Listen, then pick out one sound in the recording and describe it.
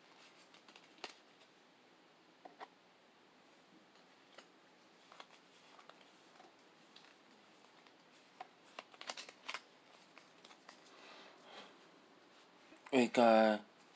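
Playing cards rustle and flick softly as they are handled.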